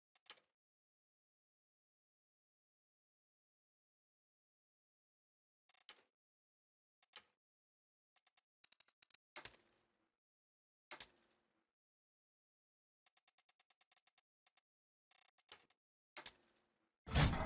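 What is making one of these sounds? Short menu clicks and beeps sound now and then.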